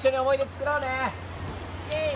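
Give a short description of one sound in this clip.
A young man speaks to children.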